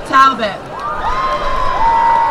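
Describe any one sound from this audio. Someone in a crowd whistles loudly.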